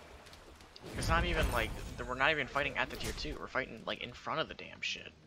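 Fantasy weapons strike and magic blasts burst in a fight.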